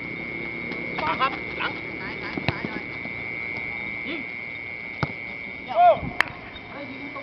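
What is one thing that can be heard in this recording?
A football thuds as it is kicked on grass.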